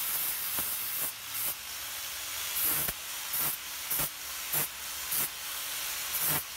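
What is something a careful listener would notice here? A grinding disc rasps harshly in bursts against steel.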